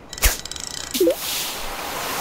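A bobber plops into water.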